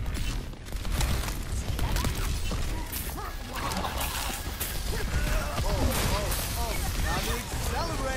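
A game weapon fires in quick bursts of shots.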